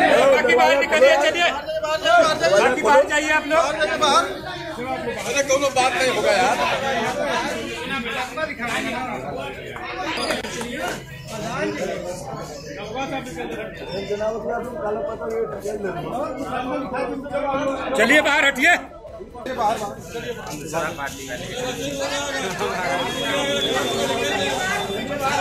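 A crowd of men talk and shout over one another nearby.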